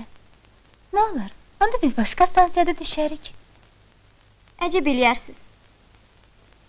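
A girl speaks softly, close by.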